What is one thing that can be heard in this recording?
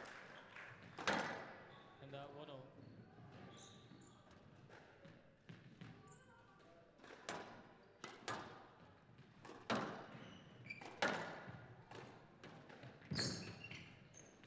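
A squash ball smacks hard against the walls with echoing bangs.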